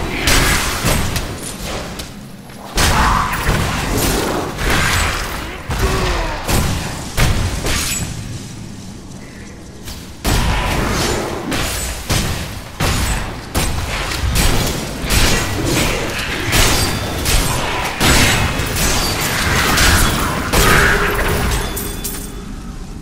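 Weapon blows and spell blasts crash and thud again and again in a game fight.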